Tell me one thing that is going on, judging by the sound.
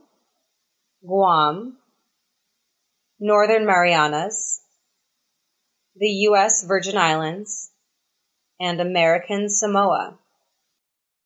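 A woman speaks clearly in short phrases.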